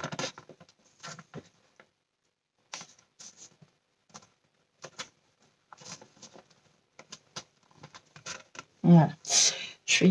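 Fingers rub and press along a strip of paper.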